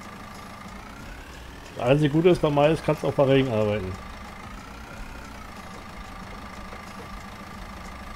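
A wheel loader's engine hums steadily.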